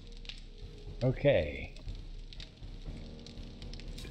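A small fire crackles softly.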